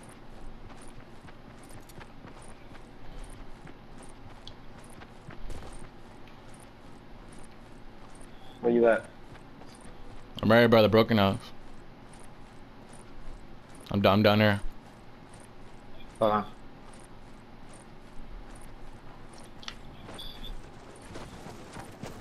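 Footsteps patter quickly and steadily on the ground.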